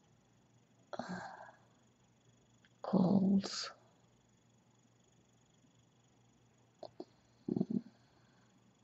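A young woman murmurs softly close by, in short bursts.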